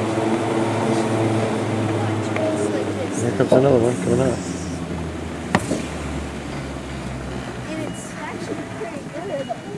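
A cable lift's machinery hums steadily, then fades.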